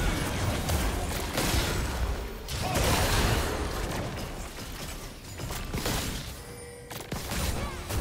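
Game sword hits and blasts clash rapidly.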